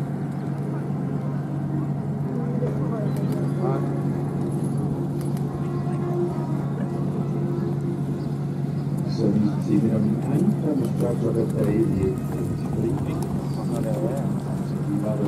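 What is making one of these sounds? Carriage wheels rumble and creak over the ground.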